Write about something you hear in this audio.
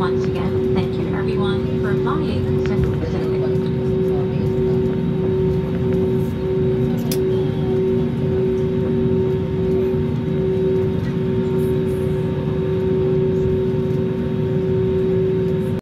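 An airplane rumbles as it taxis.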